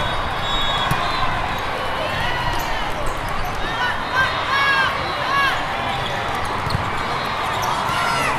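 A volleyball is struck with a dull slap.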